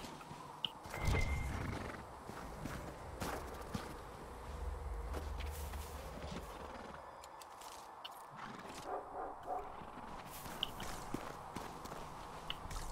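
Footsteps crunch through snow at a run.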